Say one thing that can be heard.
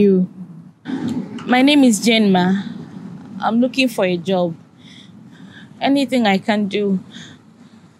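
A woman answers in a calm, firm voice nearby.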